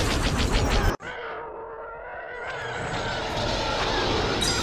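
A spaceship engine roars and hums as it speeds along.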